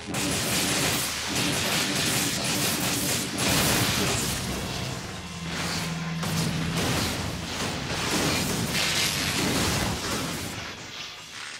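Explosions boom and roar with crackling fire.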